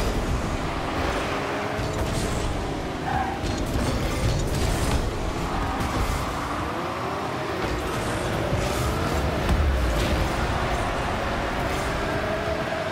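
A stadium crowd roars in a video game.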